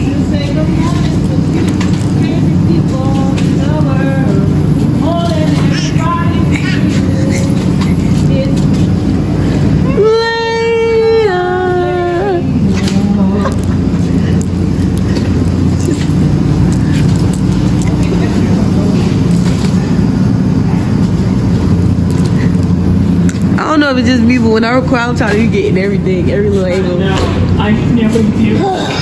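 A shopping cart rattles as it rolls along.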